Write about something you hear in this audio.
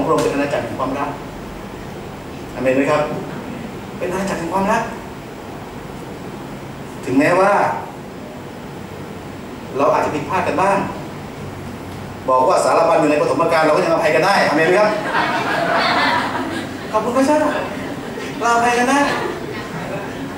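A man speaks with animation into a microphone, heard through a loudspeaker in an echoing hall, pausing between phrases.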